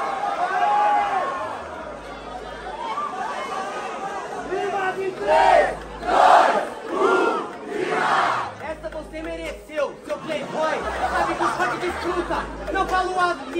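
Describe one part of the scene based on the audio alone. A young man raps loudly and aggressively into a microphone.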